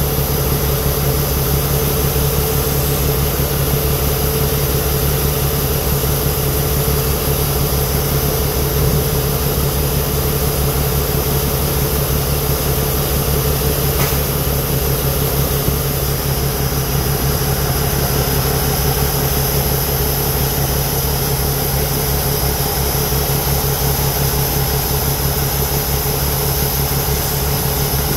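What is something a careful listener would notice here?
A combine's diesel engine runs under load.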